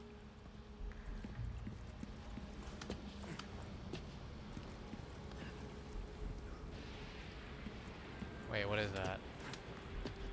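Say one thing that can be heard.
Footsteps and scrapes sound on stone.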